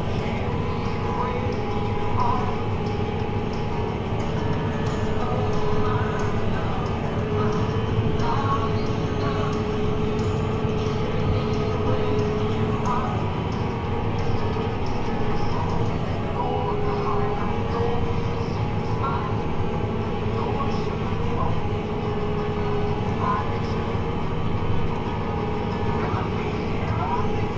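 A tractor engine drones steadily from inside the cab.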